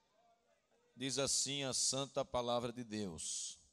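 A man speaks into a microphone in a calm, earnest voice.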